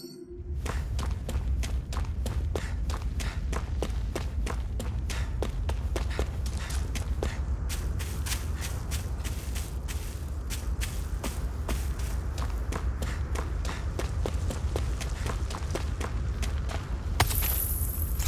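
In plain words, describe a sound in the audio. Footsteps run quickly over rocky ground.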